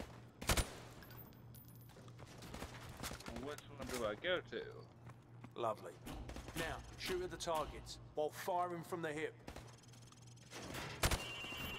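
Gunshots crack in a video game.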